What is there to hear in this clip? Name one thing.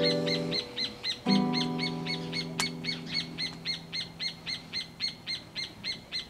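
An acoustic guitar strums ringing chords nearby.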